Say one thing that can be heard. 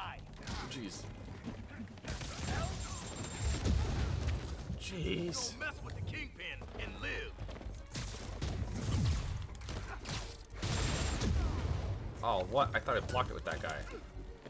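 Punches and kicks land with heavy thuds in a fight.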